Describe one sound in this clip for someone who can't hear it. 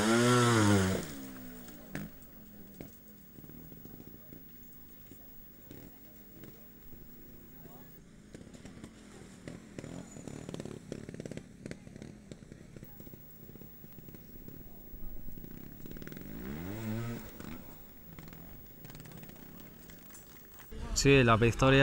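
A motorcycle engine whines and revs in the distance.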